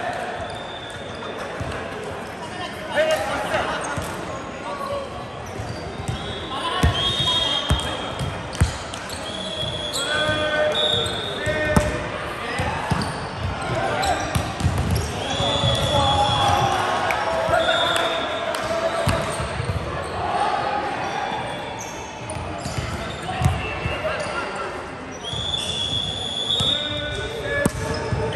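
Young men shout and call out across a large echoing hall.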